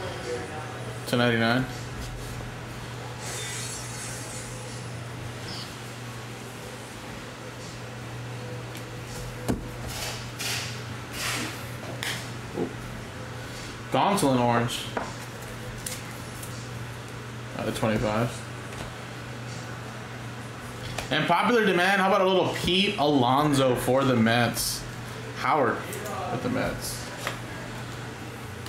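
Cards shuffle and flick against each other in hands.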